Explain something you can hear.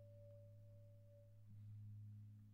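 A flute plays a long, steady note.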